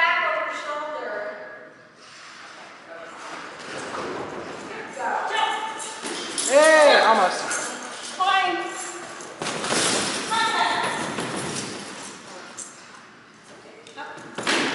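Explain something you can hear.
A woman calls out commands to a dog with animation in a large echoing hall.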